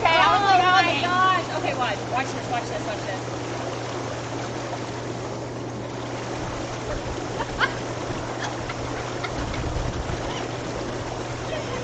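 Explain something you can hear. Water bubbles and churns steadily in a hot tub.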